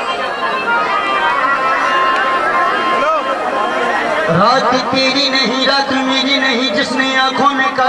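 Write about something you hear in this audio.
Men sing along in chorus through microphones.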